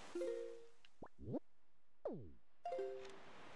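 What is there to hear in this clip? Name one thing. Quick sweeping tones slide down and then up in pitch.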